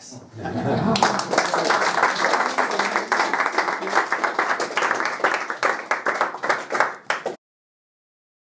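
An audience claps and applauds in a room.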